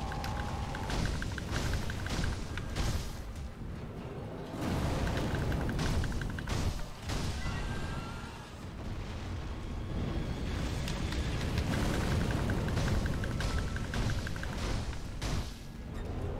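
Blades clash and strike in quick blows.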